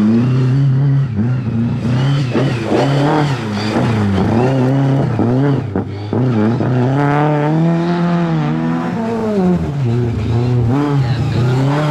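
A car engine revs loudly, rising and falling as the car races past.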